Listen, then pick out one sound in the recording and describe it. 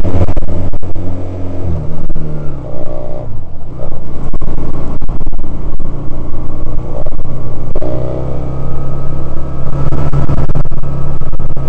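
A Honda CD185 parallel-twin motorcycle engine runs as the bike rides along.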